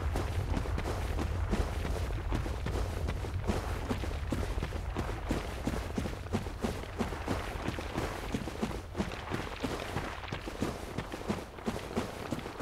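Footsteps crunch steadily on dirt and stone.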